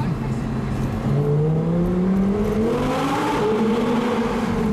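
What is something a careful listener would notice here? A car engine revs loudly and rises in pitch.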